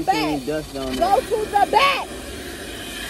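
A woman exclaims loudly in surprise.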